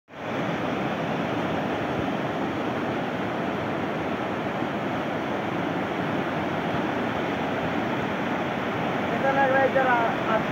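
A river rushes loudly over stones.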